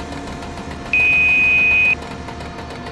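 A warning tone beeps loudly for about a second.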